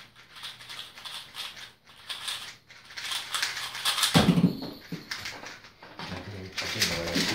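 Plastic puzzle cubes click and rattle rapidly as they are turned.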